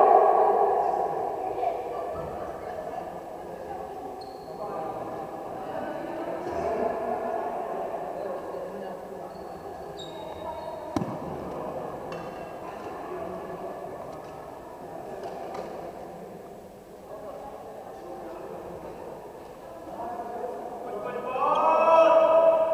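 Young girls chatter and call out nearby in a large echoing hall.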